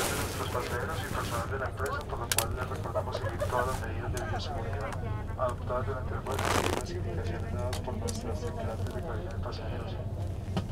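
An aircraft engine hums steadily while a plane taxis slowly.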